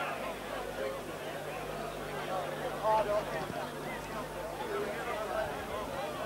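A crowd murmurs and calls out in an open-air stadium.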